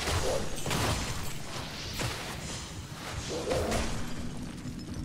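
Game spells crackle and whoosh in bursts.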